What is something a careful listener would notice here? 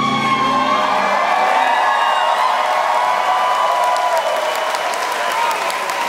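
A band plays slow, droning live music through loudspeakers in a large hall.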